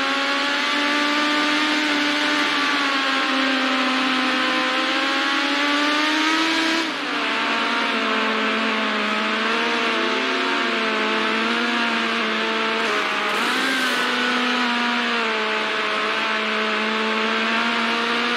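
A racing car engine roars at high revs, shifting pitch as it changes gear.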